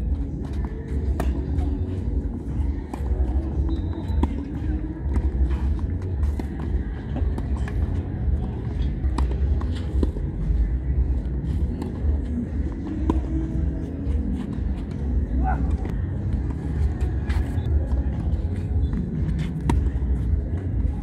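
Tennis balls are struck with rackets in a steady rally.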